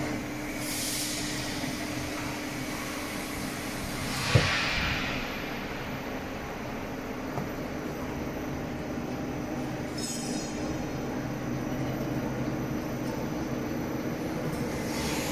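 Potatoes knock against each other on a moving belt.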